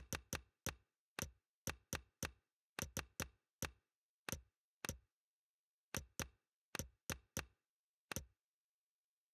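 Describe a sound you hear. Short menu clicks tick quickly, one after another, then stop.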